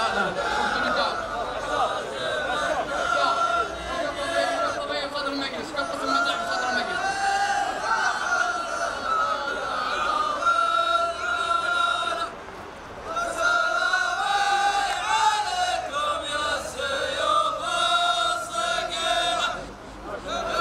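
A group of men sings a chant together outdoors.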